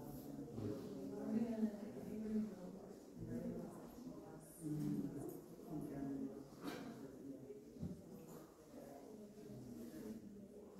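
A man speaks calmly to a small group.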